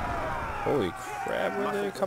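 Weapons clash in a large battle.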